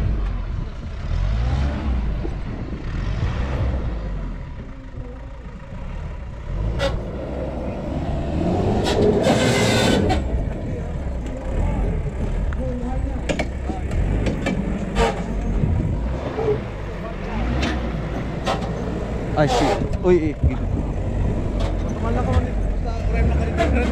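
A small electric motor whirs and whines as it climbs.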